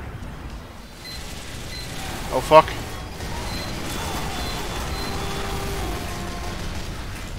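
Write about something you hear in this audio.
Rapid gunfire rattles amid loud battle noise.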